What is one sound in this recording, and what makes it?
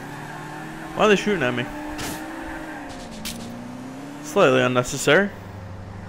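Car tyres screech loudly on the road.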